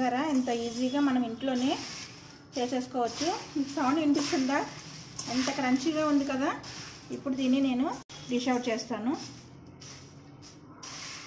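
A metal spoon stirs and rustles through dry puffed rice in a metal bowl.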